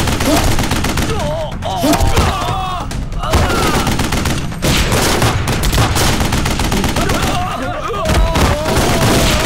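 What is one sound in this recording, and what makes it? Men cry out in pain as they fall.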